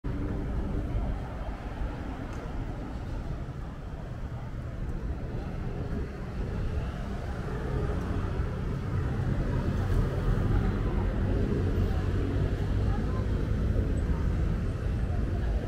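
Motor scooters hum and buzz past on a busy street.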